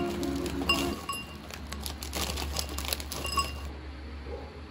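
Crunchy snack puffs pour into a glass bowl with a rattle.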